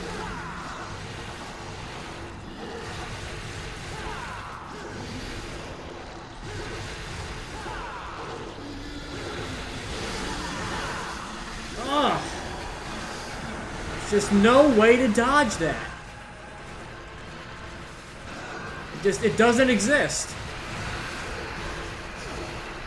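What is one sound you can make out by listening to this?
A sword slashes repeatedly with quick swishes and hits.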